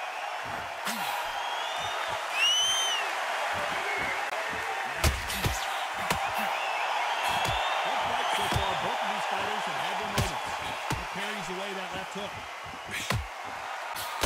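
Punches thud against a boxer's body and gloves.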